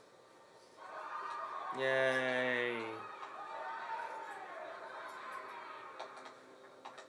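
A crowd applauds, heard through a television speaker.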